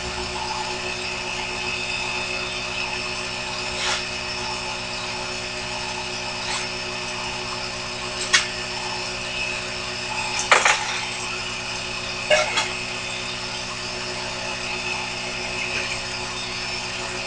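A small lathe motor hums steadily.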